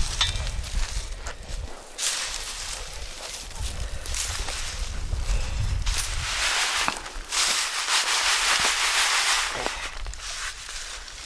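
Dry bean pods rustle and rattle as they are tossed in a woven sieve basket.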